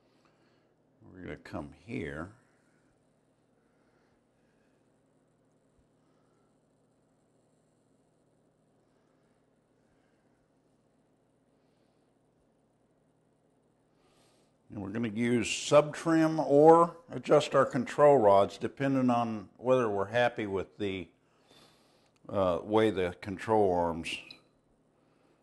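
An older man speaks calmly and clearly, close by.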